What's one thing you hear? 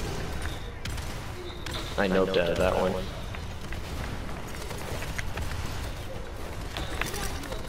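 A gun fires in quick shots.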